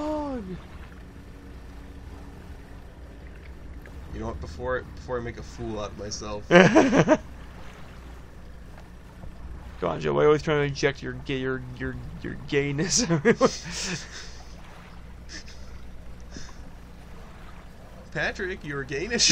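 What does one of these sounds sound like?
Water splashes around a moving boat.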